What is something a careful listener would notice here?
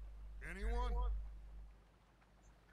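A man speaks briefly in a low, rough voice.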